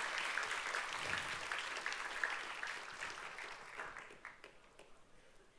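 An audience applauds in a large hall and the clapping fades.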